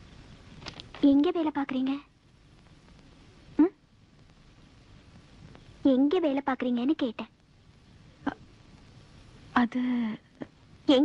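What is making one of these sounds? A young woman answers quietly nearby.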